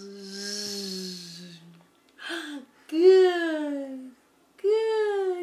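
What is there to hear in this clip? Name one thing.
A baby giggles and squeals happily close by.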